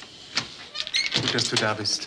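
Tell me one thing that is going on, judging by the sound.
A man speaks through a partly open door.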